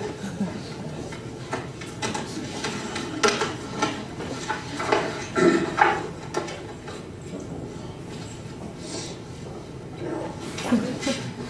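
A young man talks quietly, close by.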